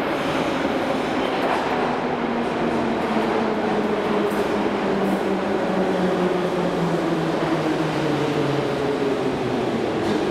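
A subway train rumbles into an echoing station and slows with a falling whine.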